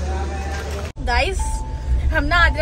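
A young woman speaks cheerfully inside a car.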